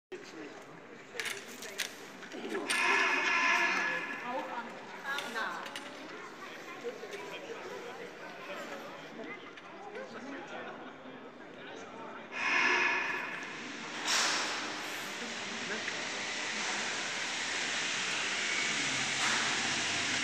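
Detachable gondola cabins roll and clatter along the station rail.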